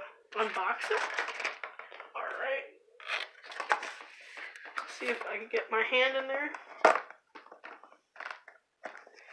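A cardboard box rustles and taps softly as it is handled.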